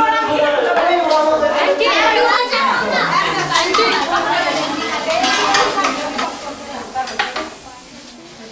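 Several young people chatter and talk over one another nearby.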